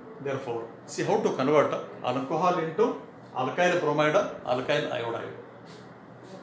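A middle-aged man speaks in a lecturing tone, close by.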